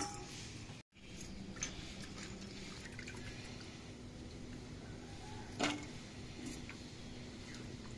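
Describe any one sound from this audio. Green beans rustle and clatter in a metal bowl.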